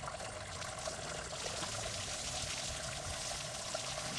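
Water sprays from a garden hose.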